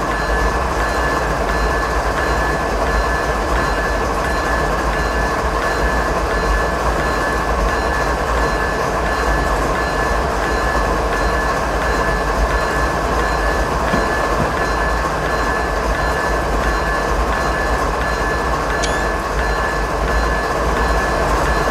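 A diesel locomotive engine rumbles and drones steadily.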